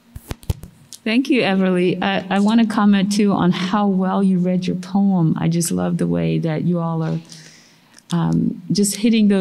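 An older woman speaks calmly into a microphone in a large room.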